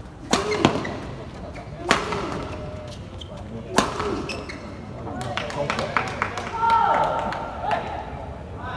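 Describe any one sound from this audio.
Shuttlecocks are struck sharply with rackets, echoing in a large hall.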